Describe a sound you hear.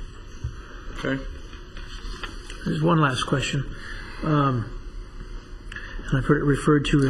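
A man speaks calmly through a microphone in a large room.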